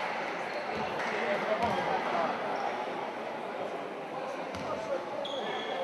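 A crowd of spectators murmurs and chatters in a large echoing gym.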